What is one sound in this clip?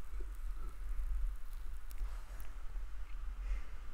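A small metal tool scrapes and clicks lightly against metal.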